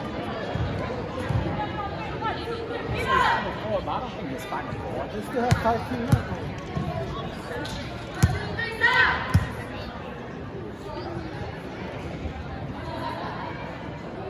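Young women chatter and call out in a large echoing gym.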